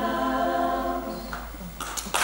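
A group of women sing together in harmony and the final chord fades out.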